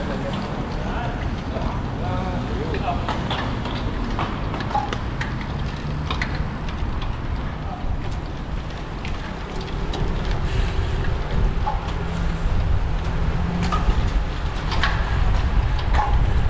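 Wind rumbles and buffets steadily.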